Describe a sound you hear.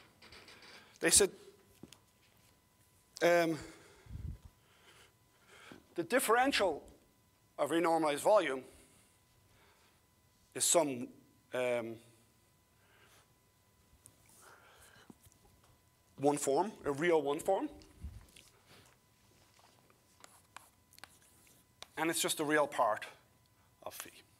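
An elderly man speaks calmly in pauses.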